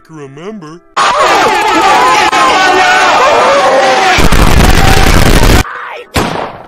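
Loud distorted music blares with a pounding beat.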